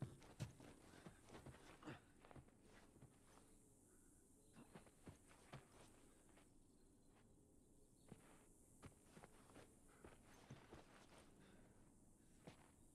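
Footsteps creak slowly across a wooden floor.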